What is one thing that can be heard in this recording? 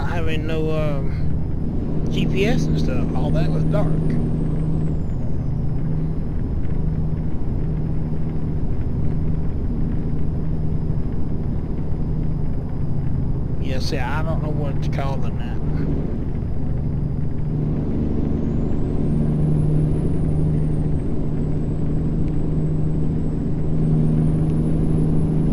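A truck engine drones steadily at low pitch.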